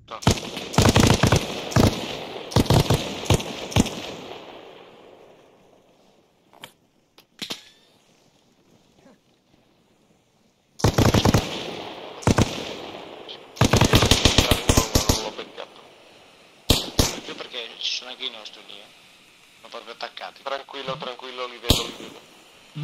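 Rifles fire in rapid bursts, loud and close, with short echoes.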